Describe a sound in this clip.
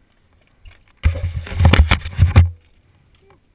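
A mountain bike rolls and rattles over dry dirt and rocks close by.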